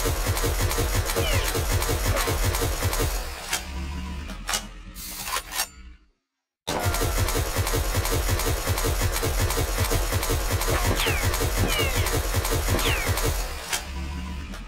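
An automatic rifle fires in rapid, unbroken bursts.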